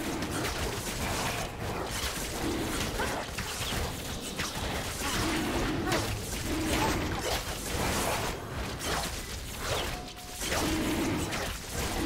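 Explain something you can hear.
Magical blasts and strikes crackle and thump in a fast fight.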